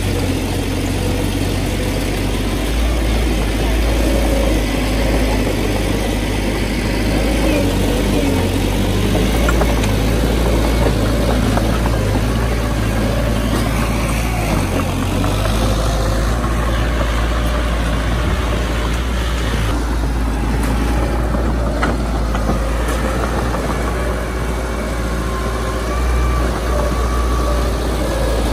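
Bulldozer tracks clank and squeak over dirt.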